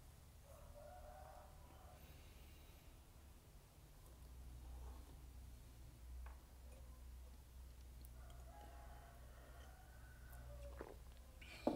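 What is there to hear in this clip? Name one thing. A man speaks quietly and calmly, close to a microphone.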